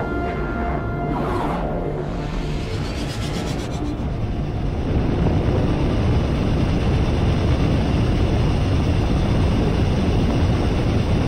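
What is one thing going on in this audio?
A spaceship engine roars with a deep, steady rumble that grows louder.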